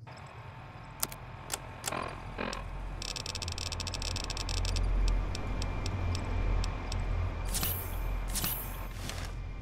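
Electronic menu clicks and beeps sound in quick succession.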